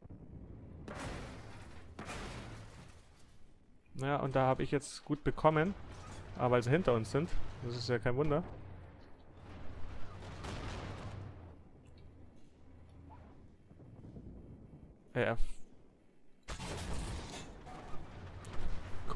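A tank cannon fires with a loud, rumbling boom.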